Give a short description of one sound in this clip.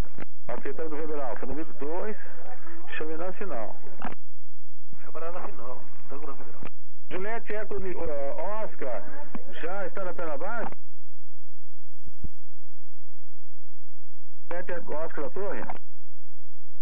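A man speaks calmly through a headset intercom.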